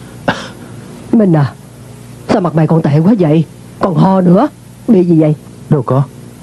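A middle-aged woman speaks with distress, close by.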